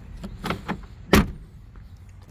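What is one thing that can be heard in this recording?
A car door latch clicks.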